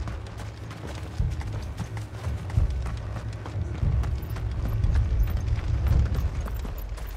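Footsteps crunch on stone and grass.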